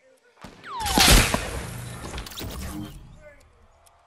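A loud blast booms and roars, then fades.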